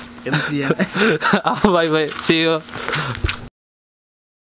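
A young man talks cheerfully and laughs close by.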